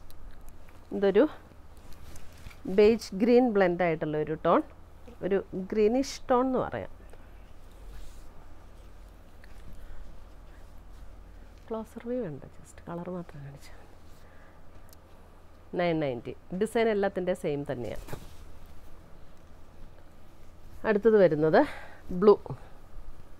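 A middle-aged woman speaks calmly into a close microphone.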